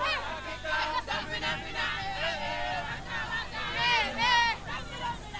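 A crowd of young people cheers and sings loudly outdoors.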